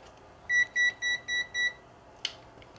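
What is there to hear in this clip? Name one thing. A multimeter beeps in short repeated bursts.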